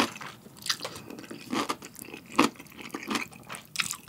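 A spoon scrapes a ceramic bowl.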